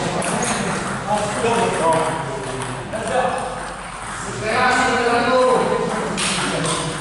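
Men talk nearby in a large echoing hall.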